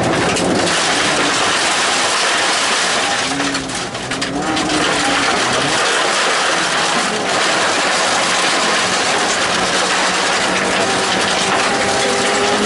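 Tyres crunch and rumble loudly on a gravel road.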